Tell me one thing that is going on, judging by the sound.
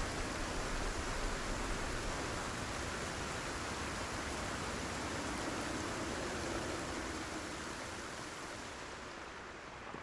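Rain falls steadily and then fades away.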